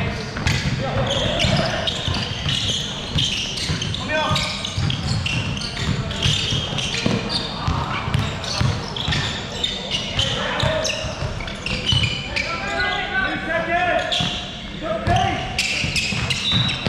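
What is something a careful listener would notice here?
A basketball bounces with echoing thuds in a large hall.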